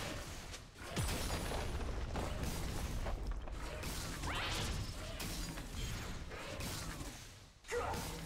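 Video game attacks and spells whoosh and crackle.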